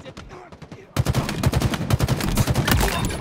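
A video game rifle fires rapid shots.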